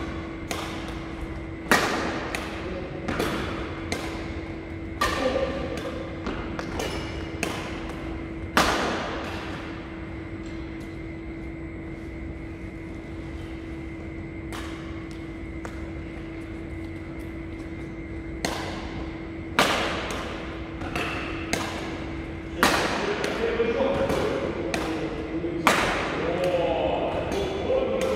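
Badminton rackets strike a shuttlecock with sharp pops in a large echoing hall.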